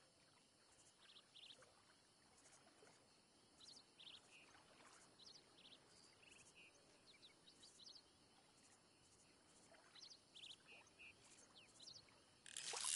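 Small birds chirp and twitter in short bursts outdoors.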